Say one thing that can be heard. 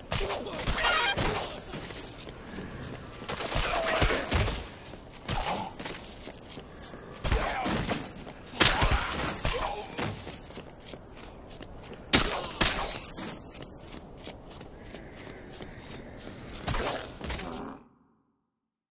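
Heavy blows and slashes strike zombies again and again.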